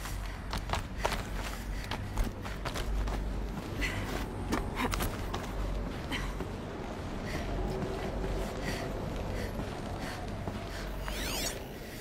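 Footsteps tread steadily over hard ground.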